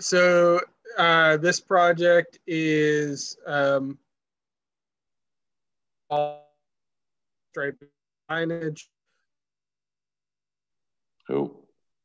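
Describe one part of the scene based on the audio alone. A middle-aged man speaks calmly over an online call, in short phrases with pauses.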